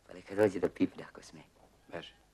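A young man speaks loudly nearby.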